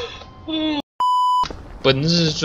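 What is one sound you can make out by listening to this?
A high steady test tone beeps briefly.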